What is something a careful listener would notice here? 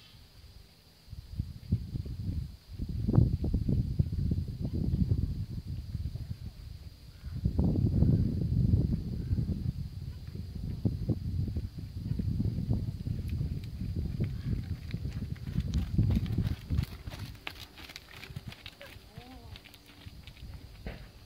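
A horse's hooves thud softly on dirt at a steady trot.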